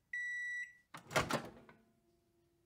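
A microwave oven door clicks open.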